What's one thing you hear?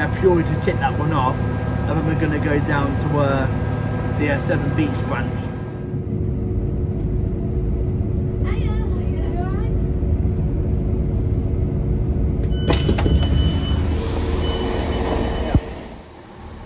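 A train rumbles steadily.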